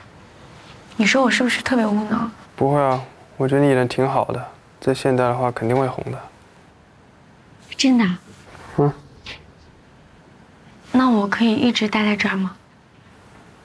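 A young woman speaks softly and playfully close by.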